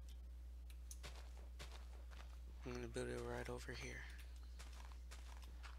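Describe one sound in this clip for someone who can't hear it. A shovel digs into dirt with soft, crunchy scrapes.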